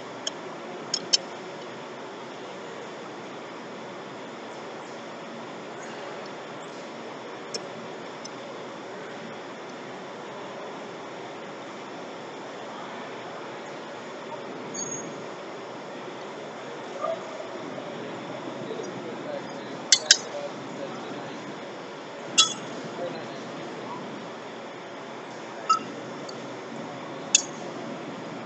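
Metal tools clink and clank against a wheel hub.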